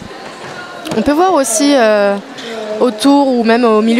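A woman shouts loudly nearby.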